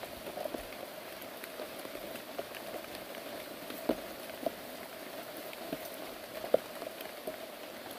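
Footsteps squelch and rustle through wet undergrowth.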